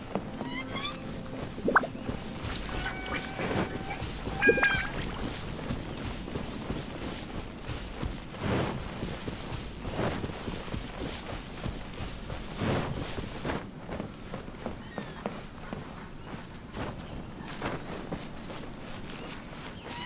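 Footsteps swish through grass.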